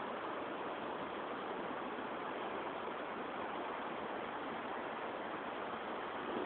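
A waterfall roars steadily as water splashes onto rocks.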